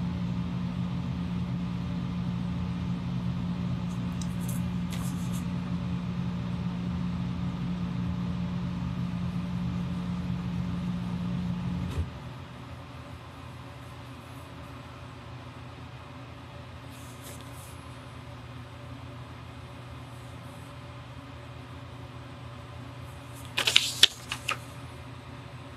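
A pen scratches faintly on paper.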